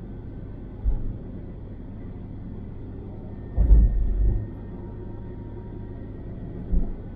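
A car engine hums steadily with tyre and road noise from inside the car.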